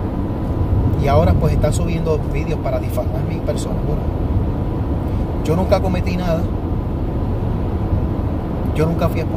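A middle-aged man talks calmly into a clip-on microphone.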